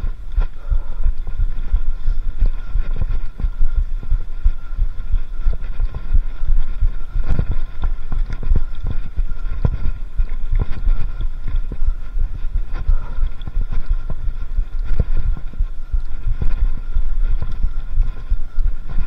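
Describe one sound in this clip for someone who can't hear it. Bicycle tyres roll and bump over a bumpy forest trail.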